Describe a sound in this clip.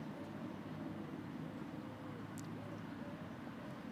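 A tennis ball is bounced on a hard court before a serve.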